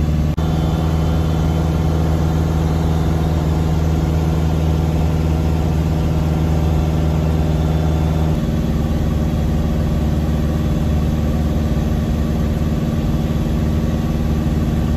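A small plane's propeller engine drones loudly and steadily, its pitch shifting slightly partway through.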